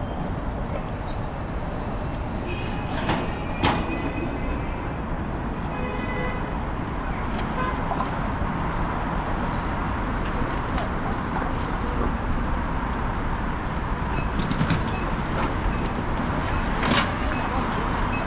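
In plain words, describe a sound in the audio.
Busy city traffic rumbles steadily outdoors.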